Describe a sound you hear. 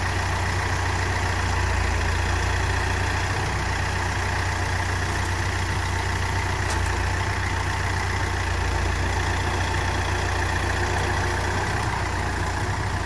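Tractor tyres crunch slowly over gravel.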